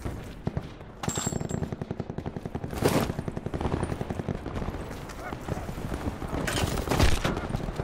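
Quick footsteps run over hard ground.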